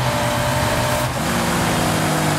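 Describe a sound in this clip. A car engine shifts gear with a brief drop in pitch.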